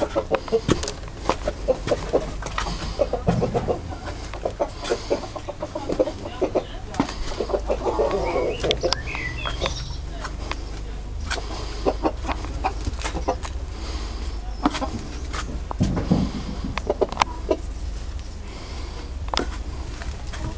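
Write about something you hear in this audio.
Hens cluck and chatter nearby.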